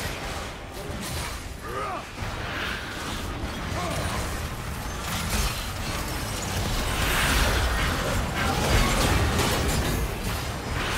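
Game impacts thud and clash repeatedly.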